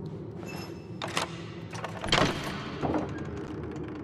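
Heavy knocks sound on a wooden door.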